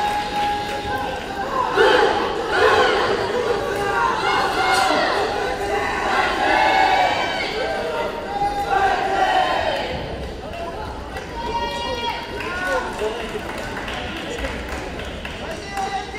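A crowd of men and women talk and call out in a large echoing hall.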